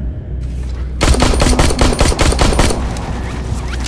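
A pistol fires a quick run of loud shots.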